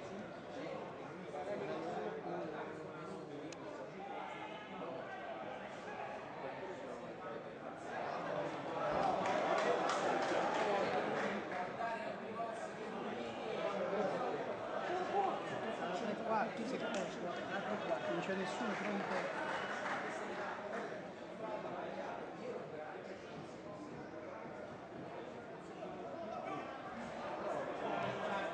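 Players shout to each other across an open outdoor pitch.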